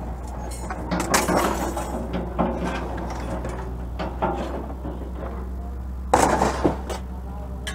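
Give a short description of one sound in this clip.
Scrap metal clanks and rattles as a man shifts it.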